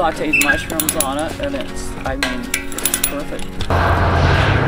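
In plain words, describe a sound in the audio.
Pliers click and snap on wire.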